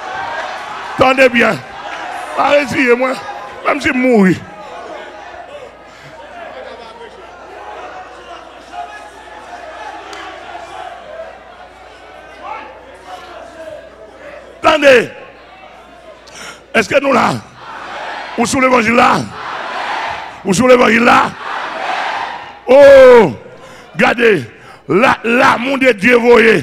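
A man preaches loudly and forcefully into a microphone, heard through loudspeakers in an echoing hall.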